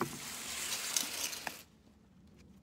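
A plastic bin scrapes and rumbles as it is moved.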